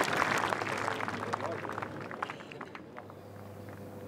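Golf clubs rattle and clink together in a bag.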